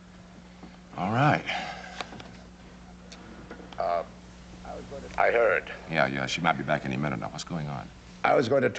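A man talks urgently into a telephone, close by.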